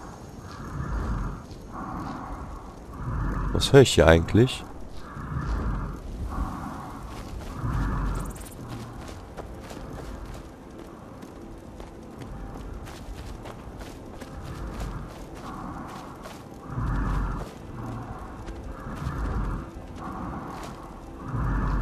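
Flames crackle and hiss softly close by.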